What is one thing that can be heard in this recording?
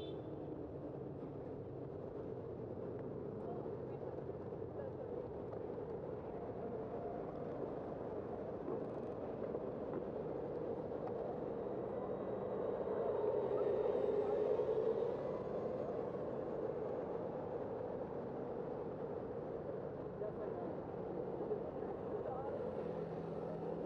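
Steady city traffic hums outdoors.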